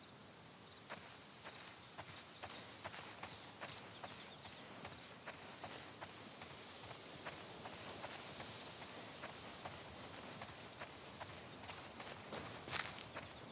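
Footsteps swish through tall dry grass.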